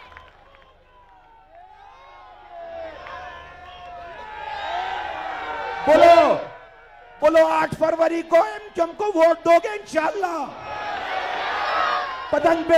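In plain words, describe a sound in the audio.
A large crowd chants and cheers loudly.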